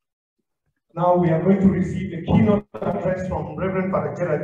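A man speaks with animation, heard through an online call.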